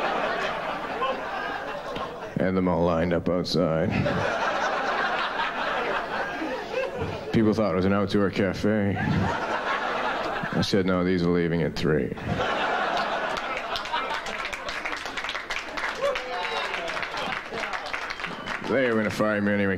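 An audience laughs loudly.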